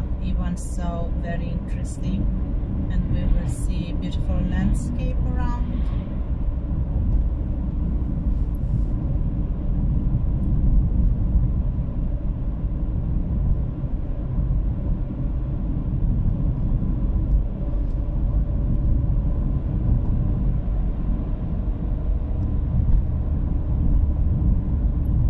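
A car engine hums steadily with low road rumble as the car drives along.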